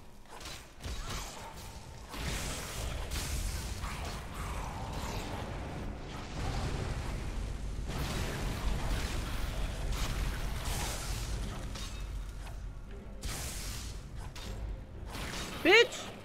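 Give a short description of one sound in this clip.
Swords clash and strike in combat.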